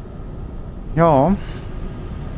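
A man briefly vocalizes through a headset microphone.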